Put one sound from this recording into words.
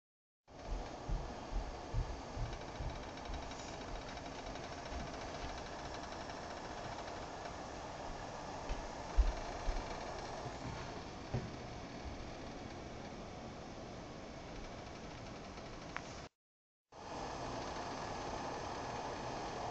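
Water simmers quietly in a pot.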